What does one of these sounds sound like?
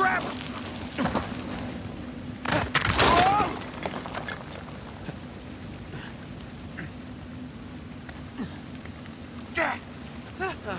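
Hands scrape and grip on rock.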